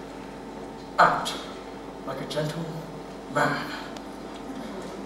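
A man cries out dramatically in a large, echoing room.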